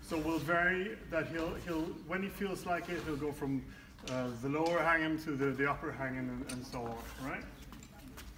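A man speaks calmly and explains, close by, in a large echoing hall.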